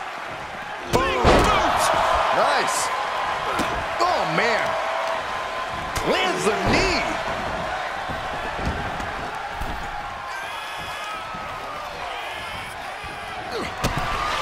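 Bodies thud heavily against the ring and the floor.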